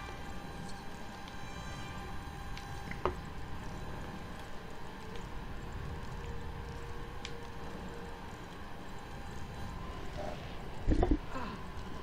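Molten lava rumbles low and steadily.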